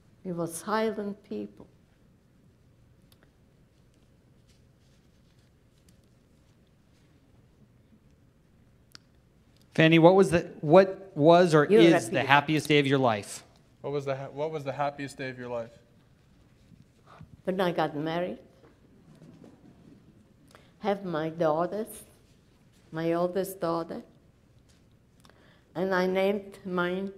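An elderly woman speaks calmly through a microphone, pausing between phrases.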